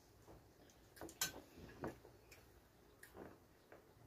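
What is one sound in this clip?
Cutlery clinks and scrapes against a plate.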